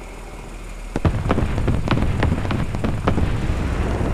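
Distant explosions boom and crack.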